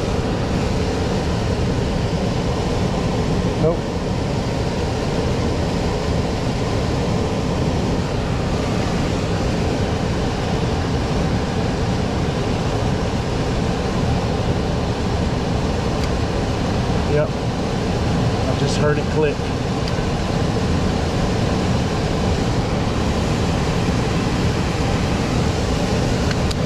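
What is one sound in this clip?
A furnace blower motor rumbles steadily.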